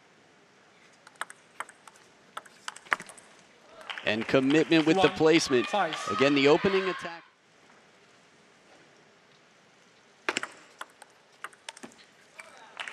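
A table tennis ball clicks back and forth between paddles and the table.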